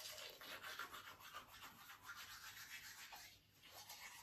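A toothbrush scrubs rapidly against teeth.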